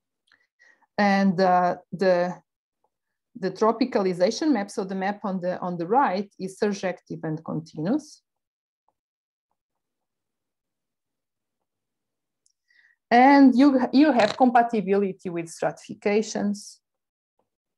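A young woman speaks calmly into a close microphone, pausing between phrases.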